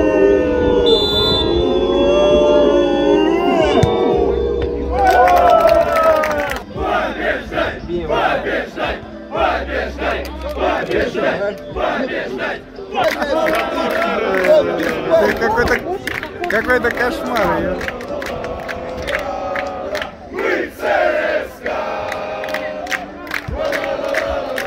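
Young men shout to each other outdoors.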